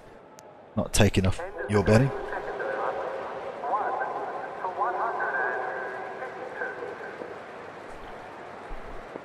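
A crowd cheers and roars in a large stadium.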